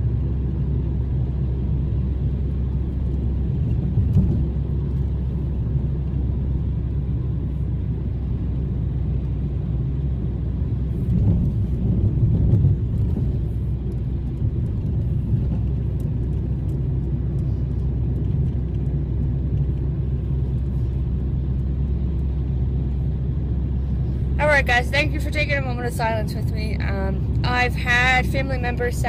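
A car's engine and tyres rumble low and steadily.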